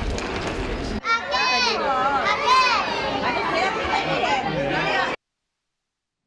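Young children chatter excitedly close by.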